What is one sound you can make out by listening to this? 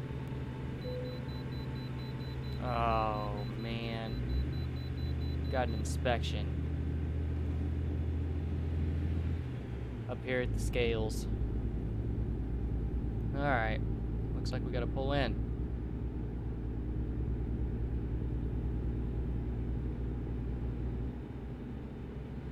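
A truck engine hums steadily as it drives along a highway.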